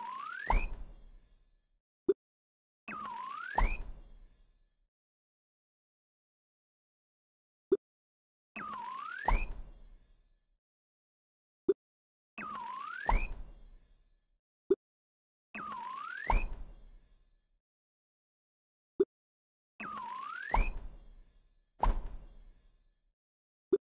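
A rising electronic swoosh ends in a deep booming thud.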